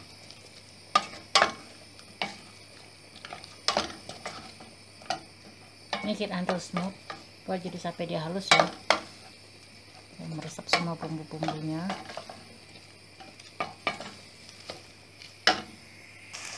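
A wooden spoon stirs and knocks against a metal pot.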